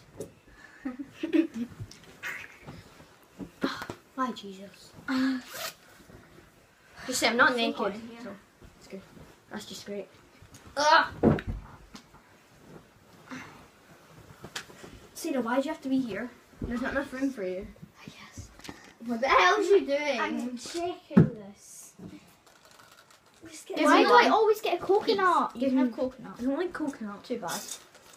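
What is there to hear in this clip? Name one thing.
Young girls talk and laugh close by, with animation.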